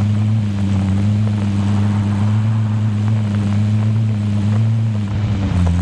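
Tyres roll over a road and grass.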